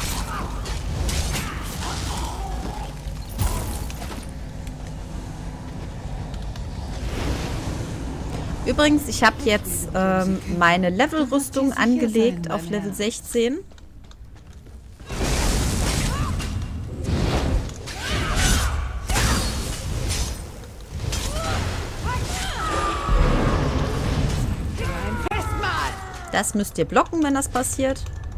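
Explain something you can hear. Electric magic crackles and zaps in a fight.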